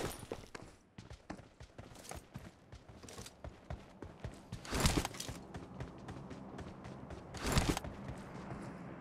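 Footsteps patter quickly over the ground.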